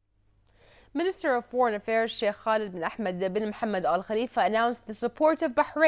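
A woman reads out calmly and evenly into a close microphone.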